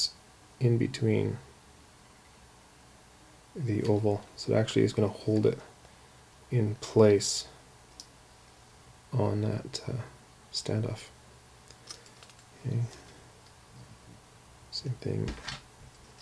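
A screwdriver turns a small screw with faint clicks.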